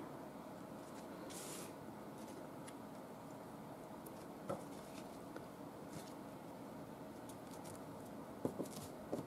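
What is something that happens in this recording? Paper rustles softly as hands handle it.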